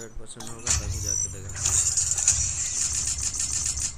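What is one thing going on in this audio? A metal crate clanks and whirs open.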